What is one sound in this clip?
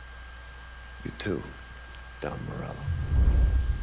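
A younger man answers calmly and briefly, close by.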